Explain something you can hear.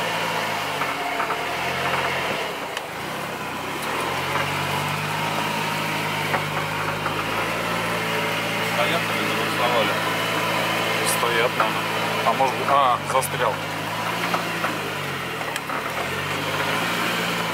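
The car body creaks and rattles over bumps.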